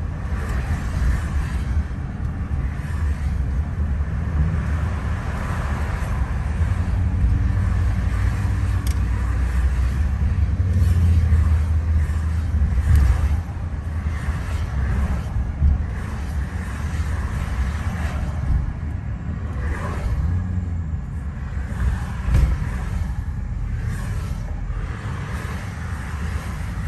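A car's engine and tyres rumble steadily as it drives along a road.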